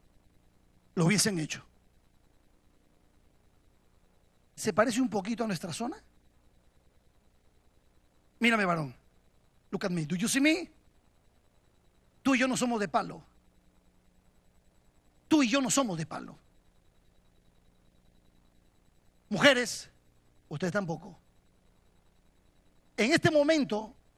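A middle-aged man preaches with passion into a microphone, in short bursts with pauses between them.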